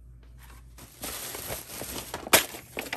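Bubble wrap crinkles.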